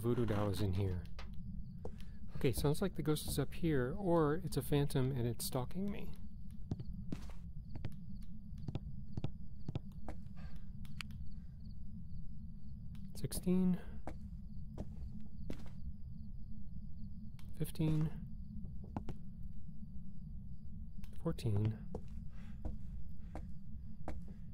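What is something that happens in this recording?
Footsteps thud on a creaking wooden floor.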